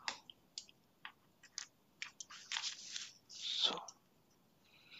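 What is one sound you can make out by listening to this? Paper rustles under a hand.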